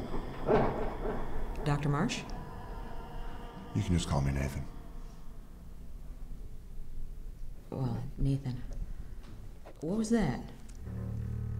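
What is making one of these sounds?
A woman speaks tensely nearby.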